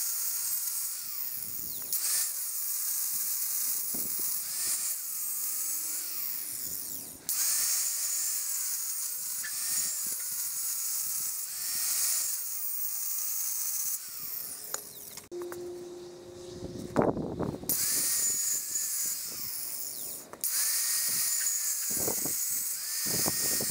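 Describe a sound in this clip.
An angle grinder whines loudly as it grinds metal.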